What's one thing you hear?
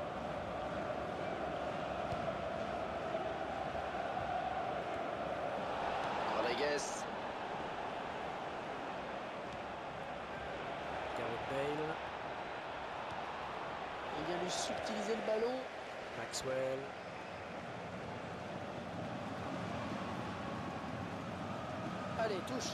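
A stadium crowd roars and chants steadily.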